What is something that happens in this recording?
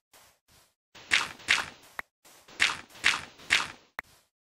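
A shovel digs into sand with loud gritty scrapes.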